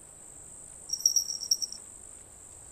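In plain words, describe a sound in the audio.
A bright chime rings out once.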